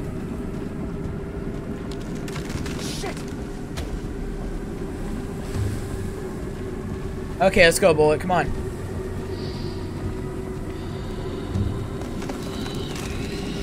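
Footsteps crunch slowly over dry leaves and earth.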